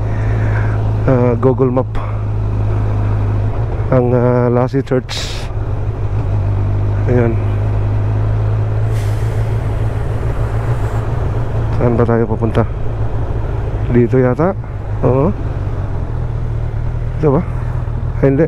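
Wind rushes past while riding.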